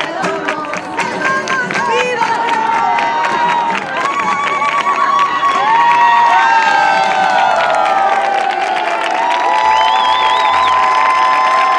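A large crowd of women ululates and cheers loudly outdoors.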